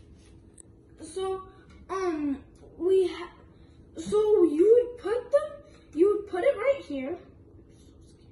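A young boy talks with animation, close by.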